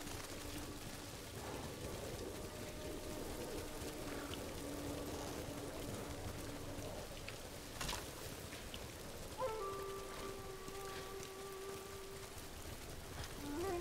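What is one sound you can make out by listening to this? A horse's hooves thud steadily on soft ground.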